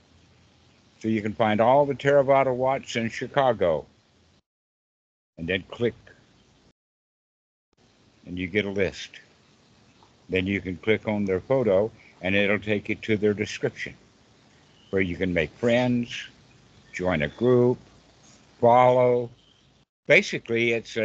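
A young man speaks calmly through an online call.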